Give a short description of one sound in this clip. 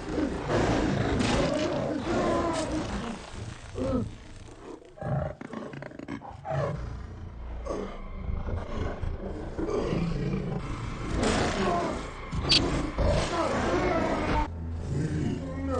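A man grunts and cries out in pain.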